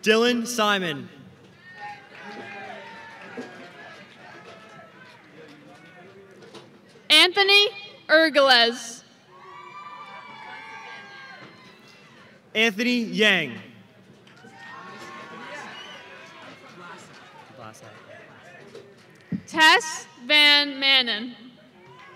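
A crowd cheers and murmurs in the open air.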